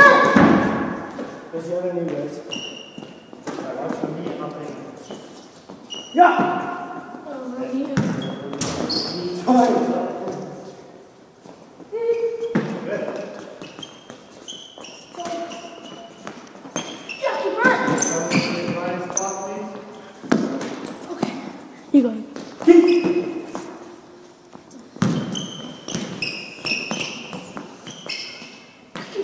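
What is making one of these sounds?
A boy talks and calls out in a large echoing hall.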